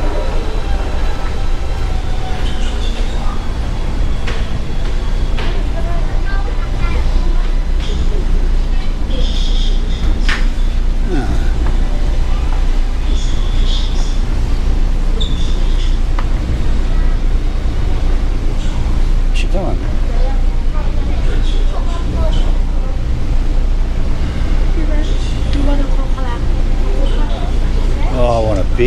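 A ship's engine drones low and steady throughout.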